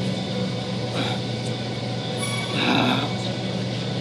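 A man grunts and strains with effort close by.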